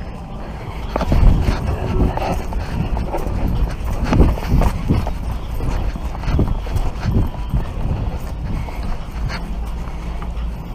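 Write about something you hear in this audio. A rolled-up mat rubs and bumps right against the microphone.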